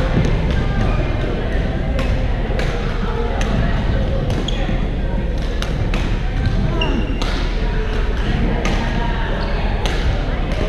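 Many players talk and call out in a large echoing hall.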